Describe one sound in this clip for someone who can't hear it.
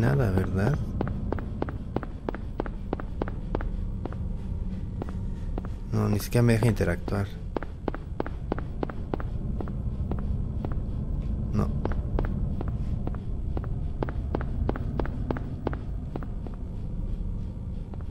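Footsteps tread steadily on pavement.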